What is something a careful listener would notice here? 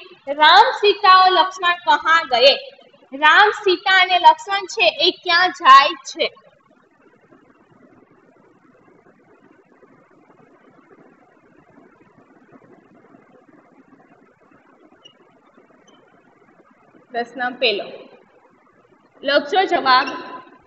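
A young woman reads aloud clearly, close to a microphone.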